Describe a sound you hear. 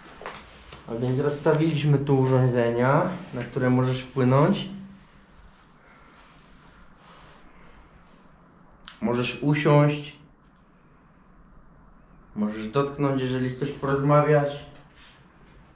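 A young man speaks loudly close by.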